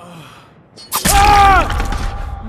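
A blade strikes a body with a sudden thud.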